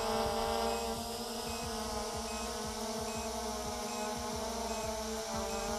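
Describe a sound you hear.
A drone's propellers buzz steadily overhead.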